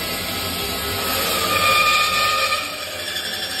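A band saw blade cuts through a metal piece with a high whine.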